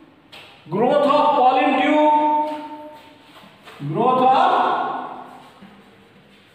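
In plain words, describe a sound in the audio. A middle-aged man speaks loudly and slowly, as if teaching.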